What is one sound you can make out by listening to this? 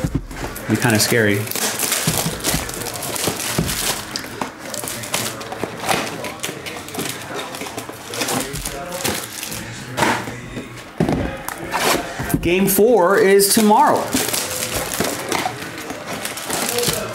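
Cardboard packaging rustles and scrapes as it is handled.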